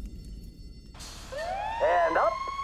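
A fire truck siren wails close by.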